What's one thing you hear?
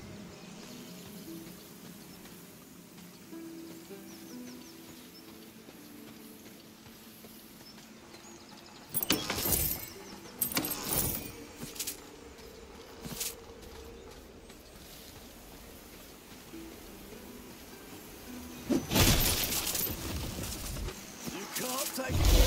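Footsteps patter through grass.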